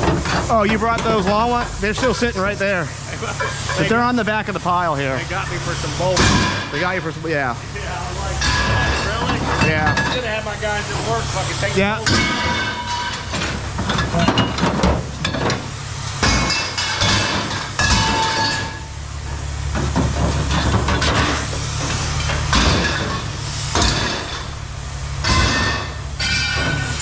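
A low engine hums steadily.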